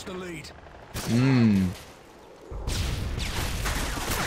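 A rifle fires a sharp, loud shot.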